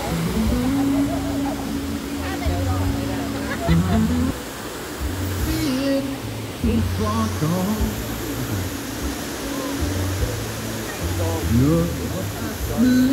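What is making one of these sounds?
Water rushes and splashes over rocks in a stream.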